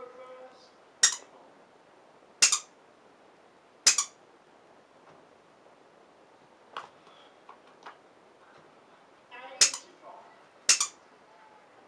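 A hard plastic toy knocks sharply on a floor.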